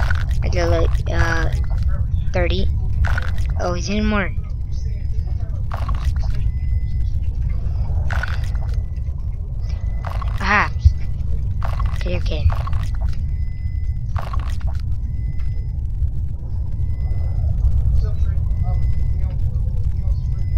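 Water rumbles in a low, steady, muffled drone.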